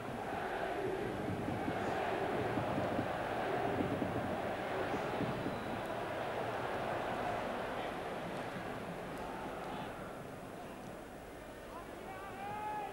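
A large stadium crowd roars and chants steadily, growing a little quieter toward the end.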